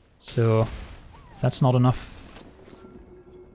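A shimmering magical sound effect rings out and fades.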